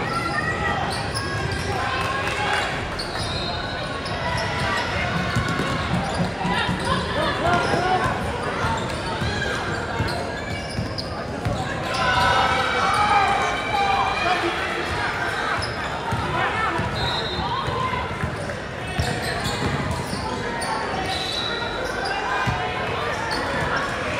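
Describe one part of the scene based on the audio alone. A crowd of spectators talks and cheers, echoing in a large hall.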